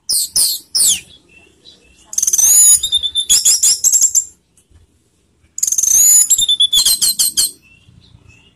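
A bird sings loud, sharp whistling phrases close by.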